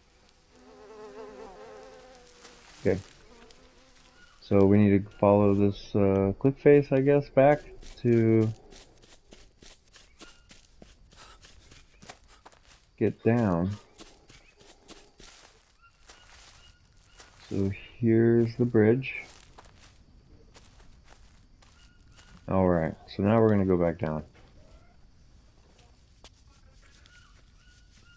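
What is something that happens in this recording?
Footsteps crunch on dry leaves and soil.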